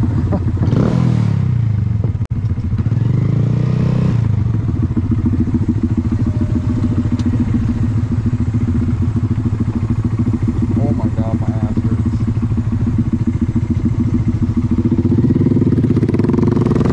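A motorcycle engine idles close by with a steady rumble.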